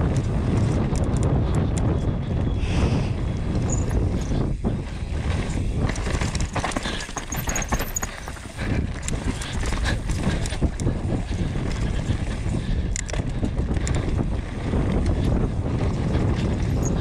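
Bike tyres rumble and rattle over a bumpy dirt trail.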